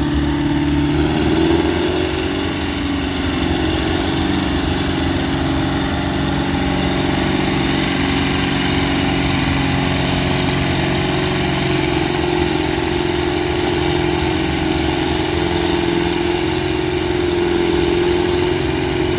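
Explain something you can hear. A tractor engine roars steadily under heavy load.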